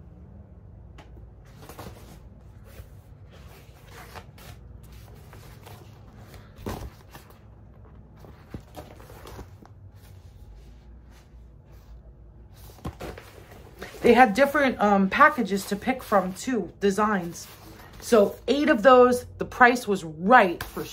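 Thin paper bags rustle and crinkle in hands.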